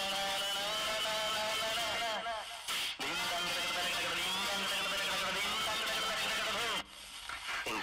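Music with singing plays loudly over a loudspeaker.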